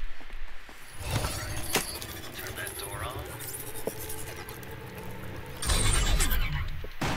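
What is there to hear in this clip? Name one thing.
An electronic device crackles and hums with energy.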